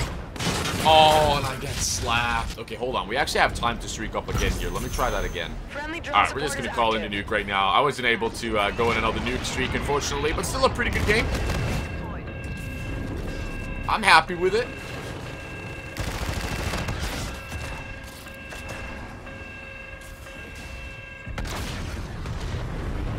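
Gunfire rattles in a video game.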